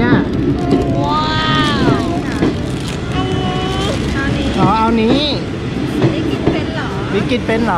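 Plastic wrappers crinkle as hands handle them.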